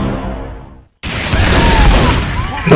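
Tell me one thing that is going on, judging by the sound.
A rocket explosion booms and crackles.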